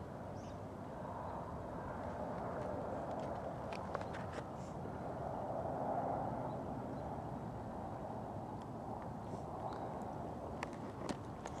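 Wind blows steadily across the microphone outdoors.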